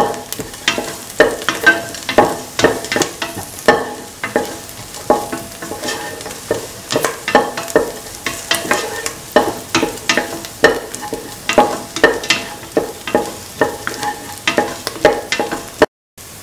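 A spoon scrapes and clanks against a metal pan.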